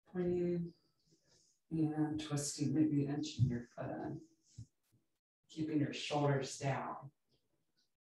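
A woman speaks calmly and softly, close to a microphone.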